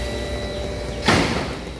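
A large branch crashes down.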